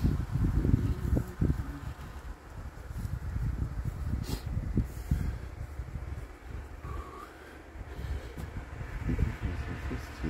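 Wind rumbles and buffets close outdoors.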